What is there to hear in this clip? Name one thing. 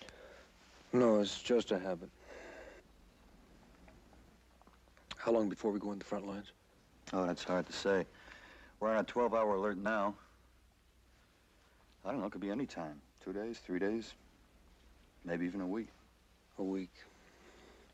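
A second young man answers in a low, tense voice.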